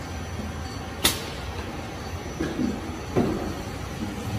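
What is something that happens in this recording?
Bottles knock against each other on a conveyor.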